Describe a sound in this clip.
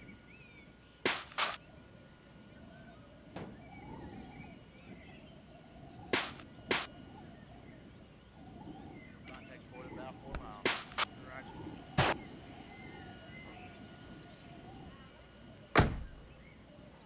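Metal car parts knock and thud in short, sharp bursts.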